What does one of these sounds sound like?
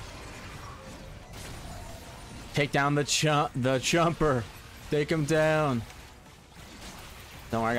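Magic blasts whoosh and crackle in a fight.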